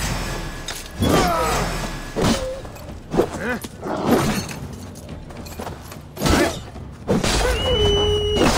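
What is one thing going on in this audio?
A wolf snarls and growls.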